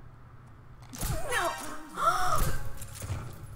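A young woman gasps loudly in surprise.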